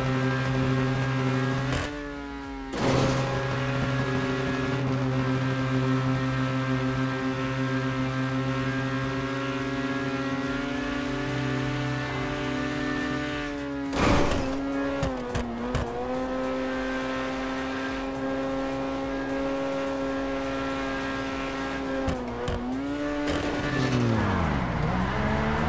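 A sports car engine drones steadily at high revs, dipping briefly now and then.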